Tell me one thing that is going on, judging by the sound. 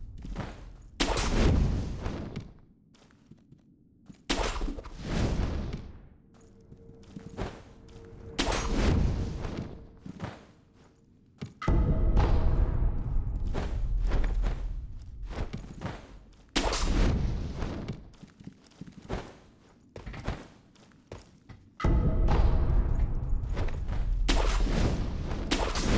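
A grappling rope whooshes through the air in repeated rushing bursts.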